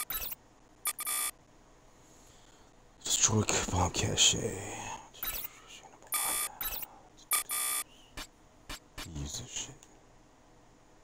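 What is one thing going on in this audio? Short electronic menu beeps and clicks sound now and then.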